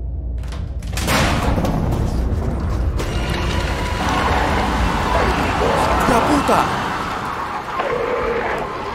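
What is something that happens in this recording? A heavy door creaks and scrapes open loudly.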